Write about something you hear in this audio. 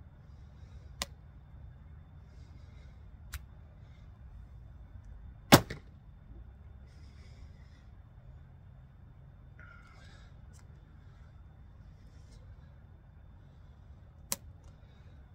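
A bowstring snaps sharply as an arrow is released.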